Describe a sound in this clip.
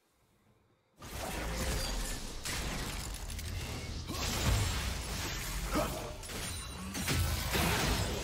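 Magic blasts and weapon clashes from a video game fight ring out.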